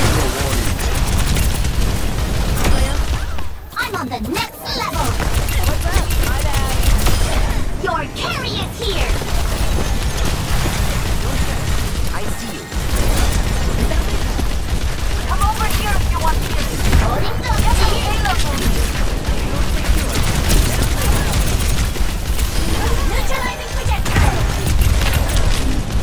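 Rapid energy gunfire blasts and pops throughout.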